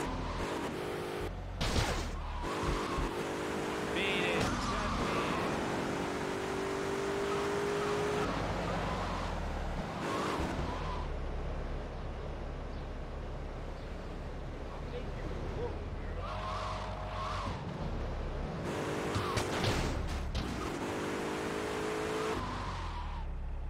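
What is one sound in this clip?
Car tyres screech while skidding.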